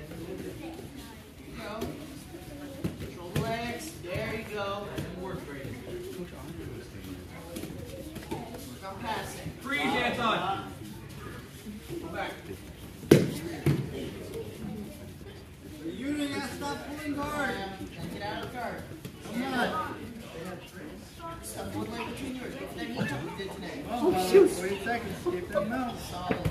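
Children's voices chatter and call out in a large echoing hall.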